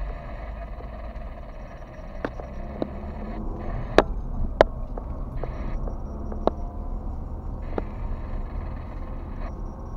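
A car's tyres rumble over the road.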